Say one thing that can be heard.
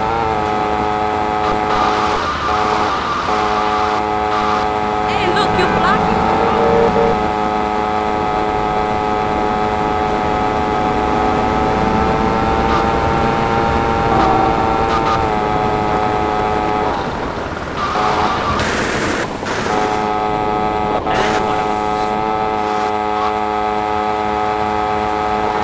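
A motorbike engine hums steadily, its pitch rising and falling slightly as it speeds up and slows.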